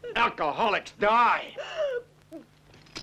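A woman screams in terror.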